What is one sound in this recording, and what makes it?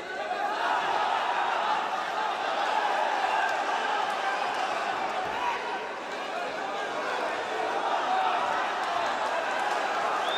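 A large crowd cheers and chants in a big echoing arena.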